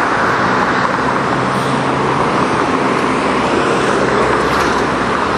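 Heavy city traffic rushes past steadily.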